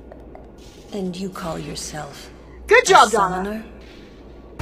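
A woman speaks coolly.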